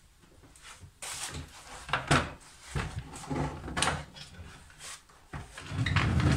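A wooden folding frame clatters and knocks as it is unfolded.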